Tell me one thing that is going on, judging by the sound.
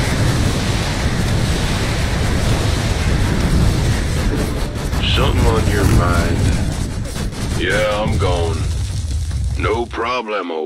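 Gunfire and explosions rumble steadily in a battle.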